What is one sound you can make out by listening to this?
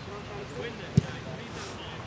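A ball is kicked with a thud.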